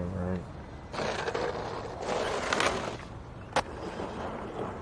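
Skateboard wheels roll and grind over a hard surface.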